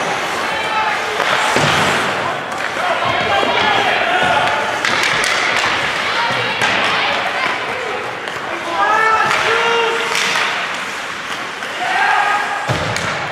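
Skates scrape and swish across the ice.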